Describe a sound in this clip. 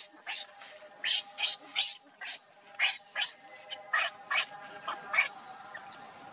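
A baby monkey shrieks loudly and repeatedly, close by.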